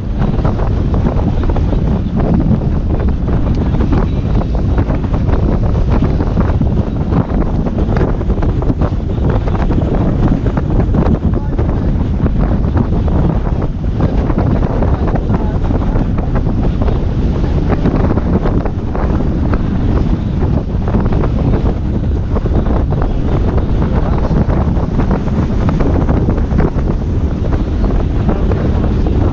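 Strong wind buffets the microphone outdoors.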